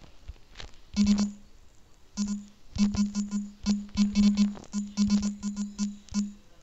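Phone keyboard keys click rapidly as someone types.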